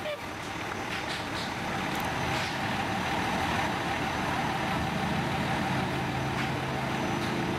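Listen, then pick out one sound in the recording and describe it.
A fire engine idles with a steady low rumble.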